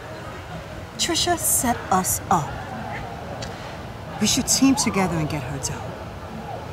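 A young woman answers calmly nearby.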